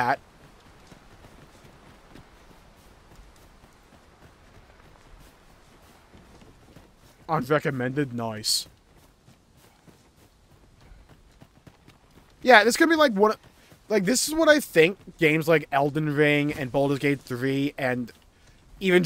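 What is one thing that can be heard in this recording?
Footsteps thud quickly on a dirt path.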